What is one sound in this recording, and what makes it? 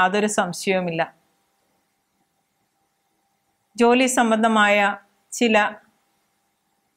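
A middle-aged woman speaks calmly and clearly into a close microphone, with short pauses.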